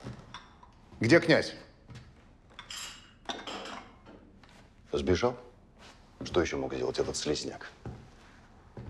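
A second man speaks firmly nearby.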